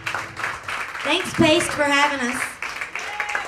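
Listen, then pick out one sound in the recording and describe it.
A young woman speaks brightly into a microphone.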